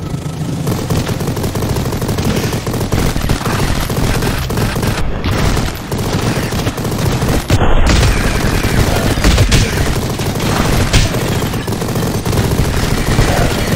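Rapid gunfire blasts from a video game.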